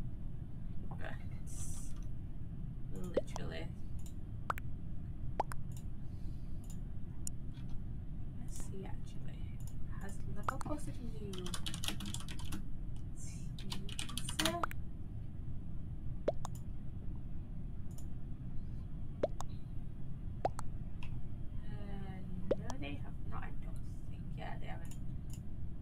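A young woman speaks casually and close to a microphone, with pauses.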